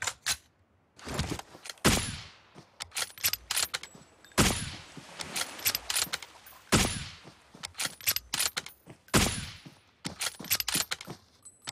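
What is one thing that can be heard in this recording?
A rifle fires single sharp shots, one after another.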